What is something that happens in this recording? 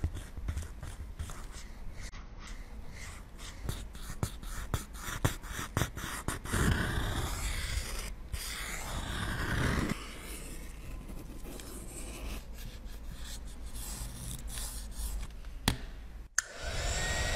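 A wooden stick scrapes and taps against a hard pan of powder.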